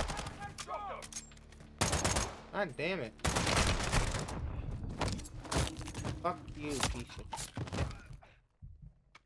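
Heavy blows and thuds land in a close fight.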